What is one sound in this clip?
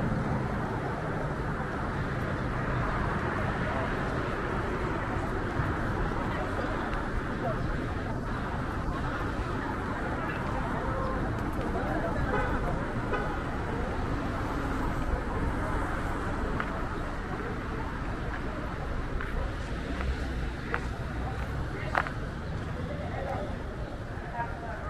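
Traffic hums steadily in the distance outdoors.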